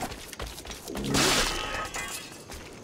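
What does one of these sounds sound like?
A blade strikes with a sudden slash.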